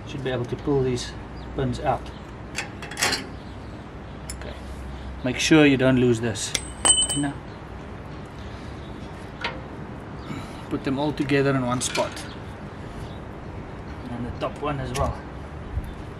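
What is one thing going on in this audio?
Metal pliers click and scrape against a brake caliper.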